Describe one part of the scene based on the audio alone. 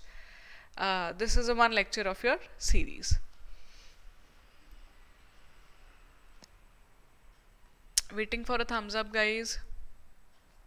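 A young woman speaks calmly and clearly into a microphone, with long pauses.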